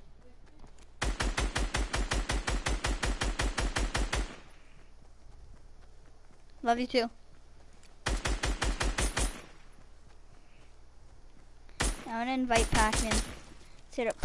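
Video game gunfire rattles in rapid bursts.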